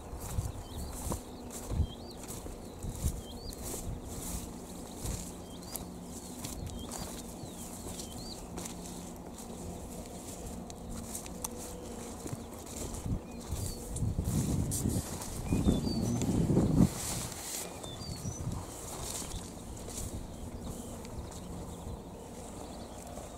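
Wind rumbles and gusts outdoors.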